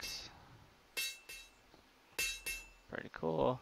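A hammer rings on an anvil.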